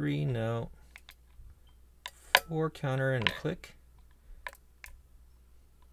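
Small metal picks click softly inside a lock.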